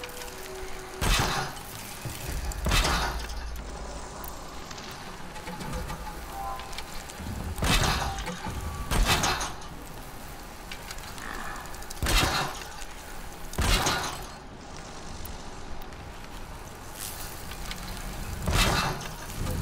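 A crossbow-like launcher fires with a sharp twang, again and again.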